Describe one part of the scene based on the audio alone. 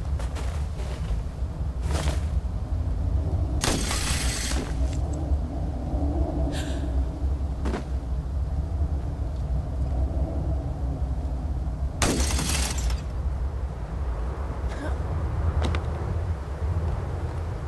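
Wind howls steadily over a snowy mountainside.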